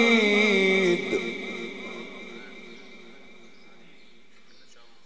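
A man's chanting voice echoes and slowly fades in a large echoing hall.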